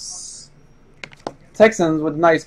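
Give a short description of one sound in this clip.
A cardboard box is set down on a table with a soft knock.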